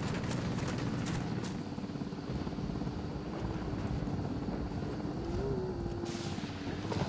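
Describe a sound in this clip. A horse gallops fast, hooves pounding on dirt.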